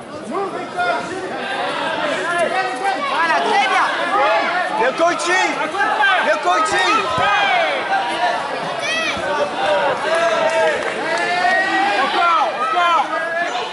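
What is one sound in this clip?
A crowd of spectators shouts and cheers excitedly nearby in a large echoing hall.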